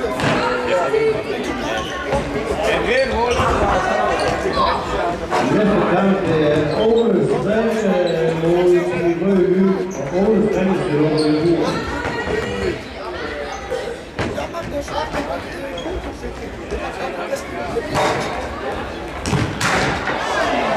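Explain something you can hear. A ball is kicked with sharp thumps.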